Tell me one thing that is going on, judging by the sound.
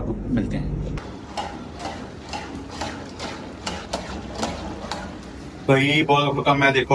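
Food sizzles in a frying pan.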